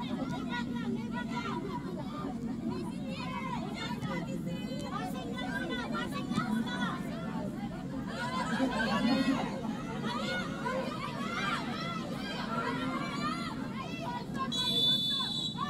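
Young women shout to each other across an open pitch.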